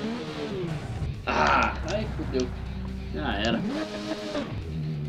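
A motorcycle crashes and scrapes across gravel.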